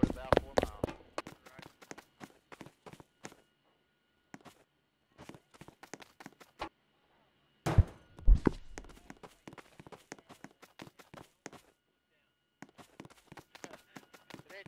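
Footsteps patter quickly across sand.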